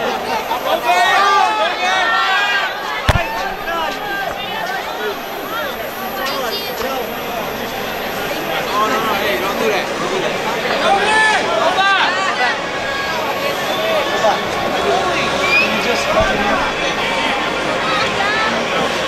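Young women shriek and cheer up close.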